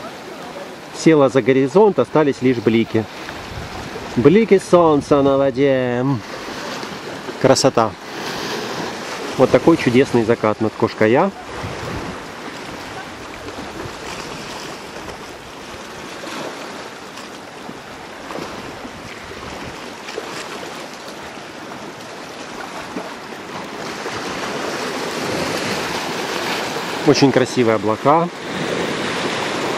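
Gentle sea waves wash softly against rocks.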